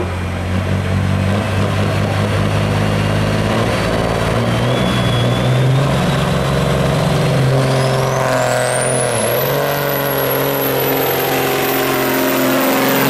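A big diesel truck engine roars loudly and revs up as it pulls.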